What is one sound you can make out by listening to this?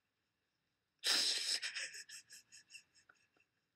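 A woman weeps and sniffs.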